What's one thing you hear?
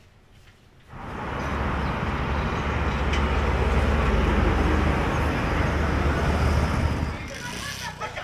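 Road traffic rumbles past steadily, with engines droning.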